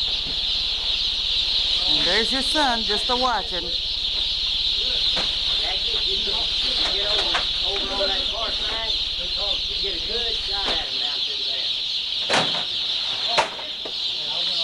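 Many chicks peep constantly.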